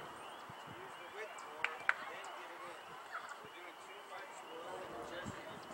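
A small crowd of adult spectators chatters and calls out outdoors.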